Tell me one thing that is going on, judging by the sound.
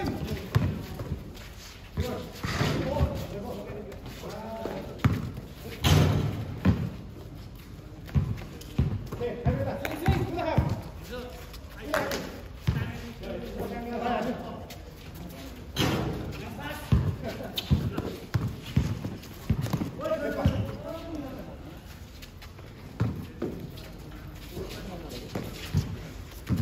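Sneakers scuff and squeak on the court.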